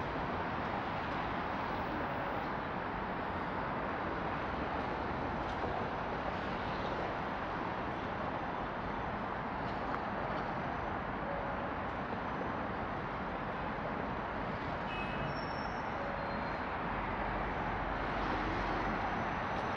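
Traffic rumbles steadily along a wide city road outdoors.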